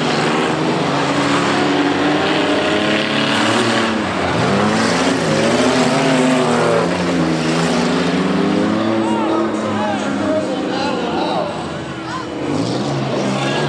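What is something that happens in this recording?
Car engines rev and roar loudly outdoors.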